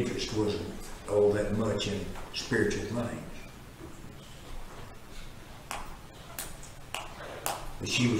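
A man speaks calmly in a room with some echo.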